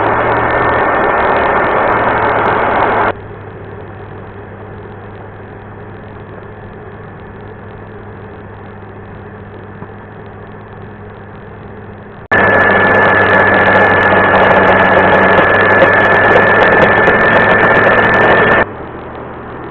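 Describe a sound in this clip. A milling spindle whines steadily as it routs through wood.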